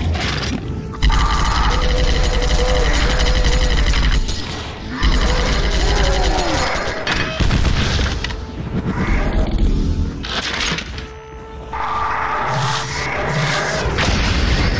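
A heavy gun fires rapidly in long, loud bursts.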